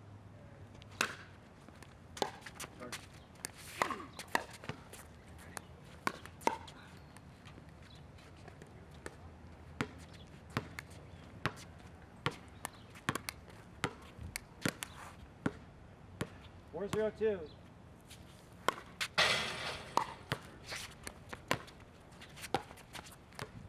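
Paddles hit a plastic ball with sharp hollow pops, back and forth.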